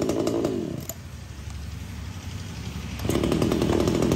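A chainsaw engine sputters back to life after a brief quiet.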